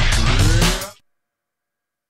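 Loud electronic dance music plays, then cuts off abruptly.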